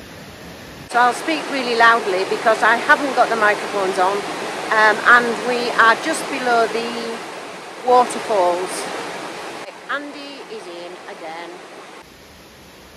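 A middle-aged woman talks with animation close to the microphone.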